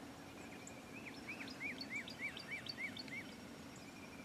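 Wild turkeys yelp in a series outdoors.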